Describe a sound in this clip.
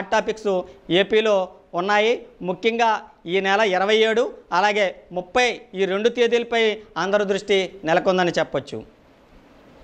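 A man speaks steadily and with animation into a close microphone.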